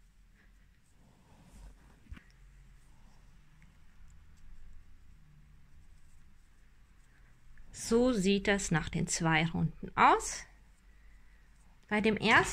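Yarn rustles softly as a crochet hook works through it.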